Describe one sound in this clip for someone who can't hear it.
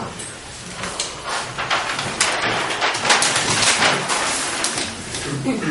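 Paper rustles and crackles as a large sheet is flipped over.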